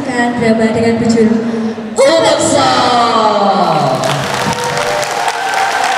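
A young woman speaks through a microphone in a large echoing hall.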